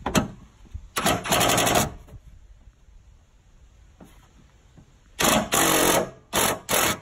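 A cordless power ratchet whirs in short bursts.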